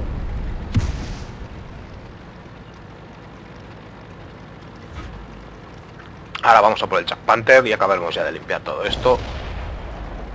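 A tank engine rumbles low and steady as it drives.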